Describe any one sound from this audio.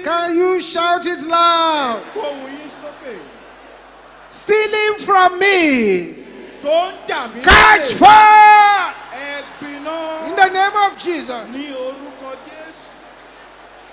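A woman prays loudly and passionately through a loudspeaker.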